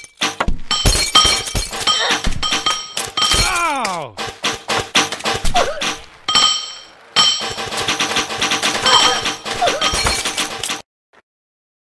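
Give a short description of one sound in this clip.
Cartoonish crashes and thuds ring out quickly one after another.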